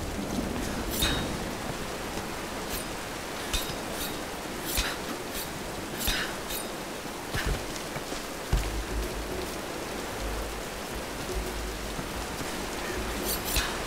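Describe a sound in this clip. Hands grip and scrape on rock while climbing.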